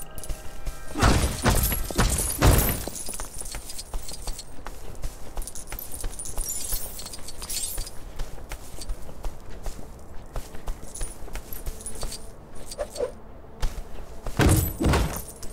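Objects smash and break apart with loud crashes.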